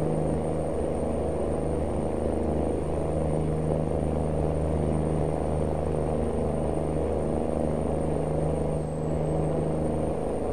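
A truck engine hums steadily while driving on a road.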